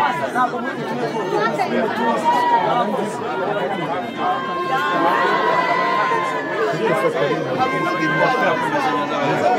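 A large crowd of people chatter and call out all around.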